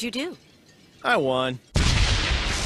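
A young man speaks cheerfully.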